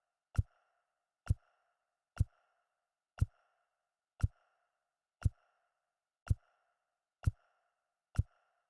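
A short menu click sounds at a steady pace, about once a second.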